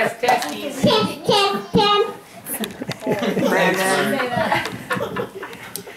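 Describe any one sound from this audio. A little girl laughs and speaks excitedly.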